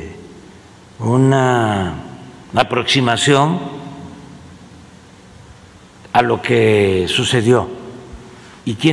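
An elderly man speaks slowly into a microphone, with long pauses.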